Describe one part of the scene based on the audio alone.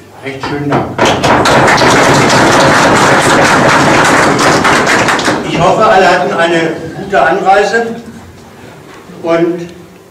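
A man speaks steadily through a microphone and loudspeaker.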